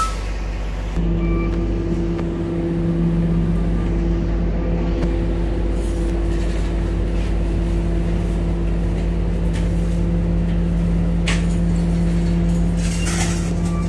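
A bus engine hums steadily while riding, heard from inside.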